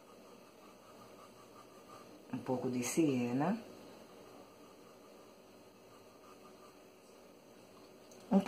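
A paintbrush strokes softly across paper.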